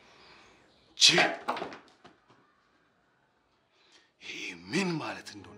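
A man speaks sternly and forcefully nearby.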